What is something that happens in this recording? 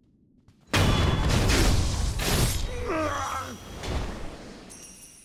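A sword slashes and strikes with loud heavy thuds.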